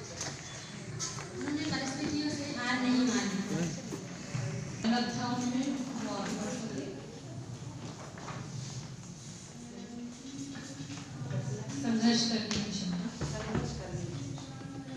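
A room full of people murmurs in the background.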